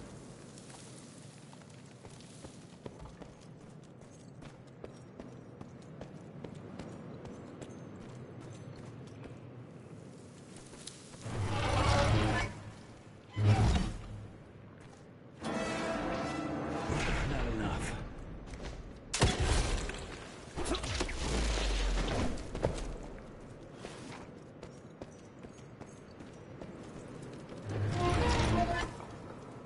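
Footsteps scuff slowly across a stone floor.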